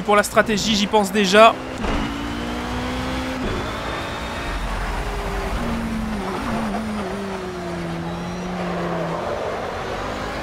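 A racing car engine roars and whines as it speeds up and slows down.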